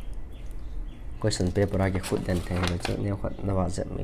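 A sheet of paper rustles as a page is turned.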